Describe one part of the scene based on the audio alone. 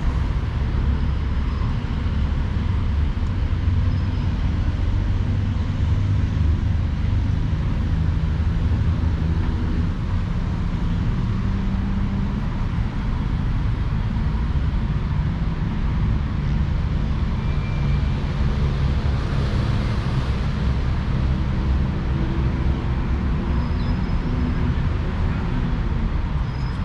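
Wheels roll steadily over asphalt outdoors, with a low rumble.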